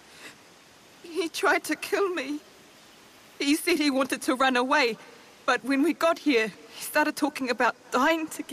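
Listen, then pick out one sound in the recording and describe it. A young woman speaks emotionally, close by.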